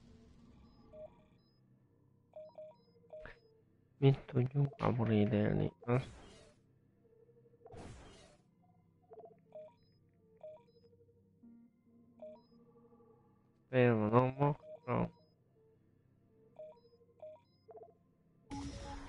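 Soft menu beeps blip now and then.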